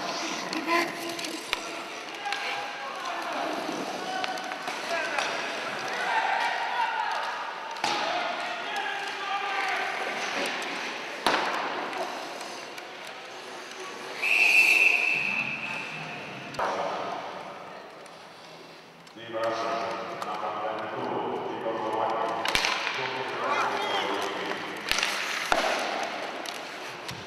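Hockey sticks clack and scrape on the ice.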